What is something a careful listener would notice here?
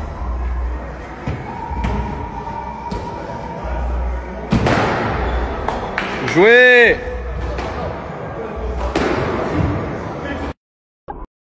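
A ball thuds against a net and boards in an echoing hall.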